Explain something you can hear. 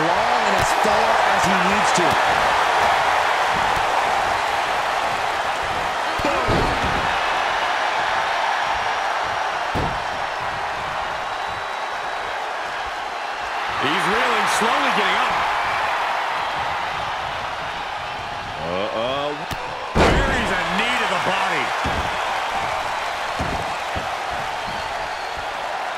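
A large crowd cheers and roars steadily in an echoing arena.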